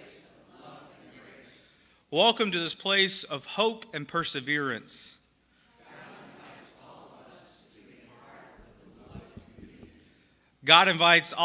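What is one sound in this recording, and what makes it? A congregation of men and women reads out a response together.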